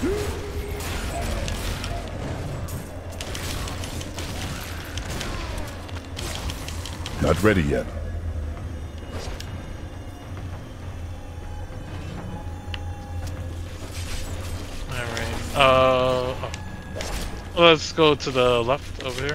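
Blows thud and clatter in a busy fight in a video game.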